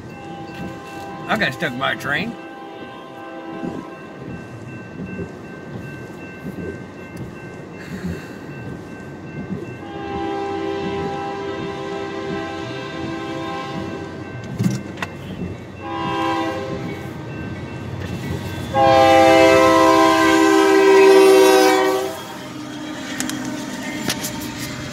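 A railway crossing bell rings steadily.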